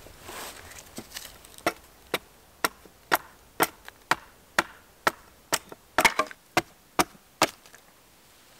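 A hatchet chops and splits wood with sharp repeated knocks.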